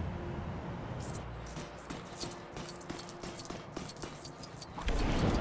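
Coins jingle and clink in quick bursts.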